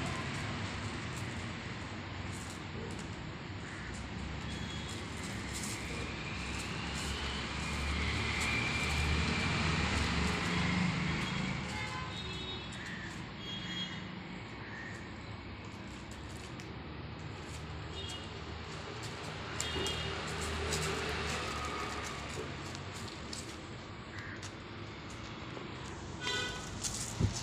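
A dog's paws scuffle and crunch on gravel.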